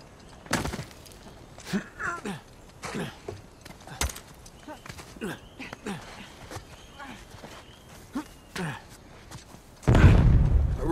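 Hands and boots knock and scrape against wood and rock while climbing.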